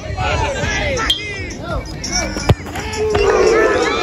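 A foot kicks a football.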